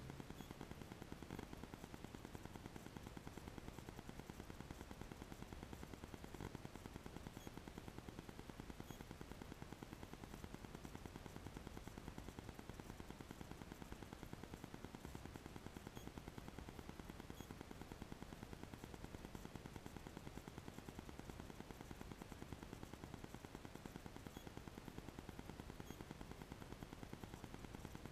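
A car engine idles with a steady low hum, heard from inside the car.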